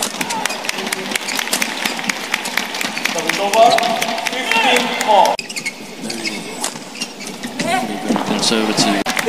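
Rackets smack a shuttlecock back and forth in quick rallies.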